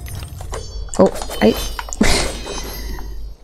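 A loud magical blast bursts with a crash.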